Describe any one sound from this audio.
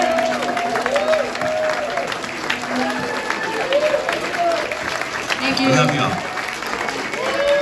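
An electric guitar plays through an amplifier.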